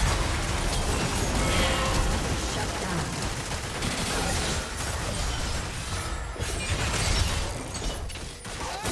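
Video game hits clash and thud again and again.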